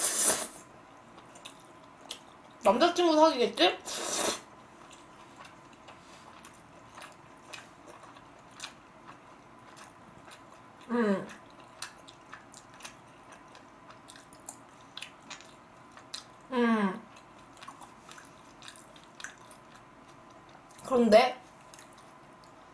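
A young woman chews and slurps food close to a microphone.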